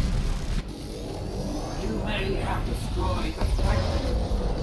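A large explosion booms.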